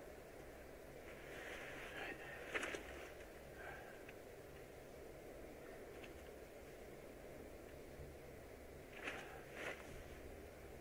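Paper rustles and crinkles close by.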